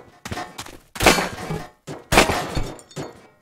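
A door bursts apart with a crash.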